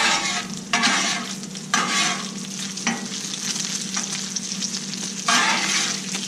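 Food sizzles loudly on a hot griddle.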